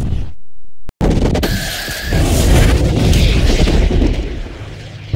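A race car speeds along a road with a rising engine whine.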